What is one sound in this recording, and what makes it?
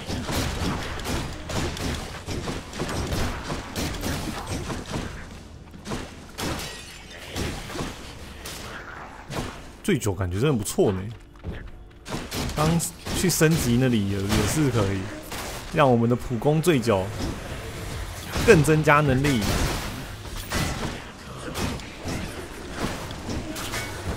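Blades swish and strike with sharp, quick hits.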